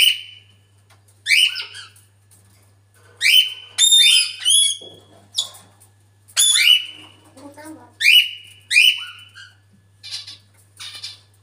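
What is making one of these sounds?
A parrot squawks loudly in repeated short shrieks and whistles.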